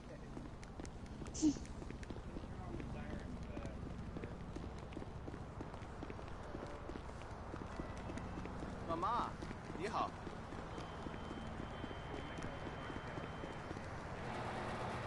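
Footsteps slap quickly on pavement.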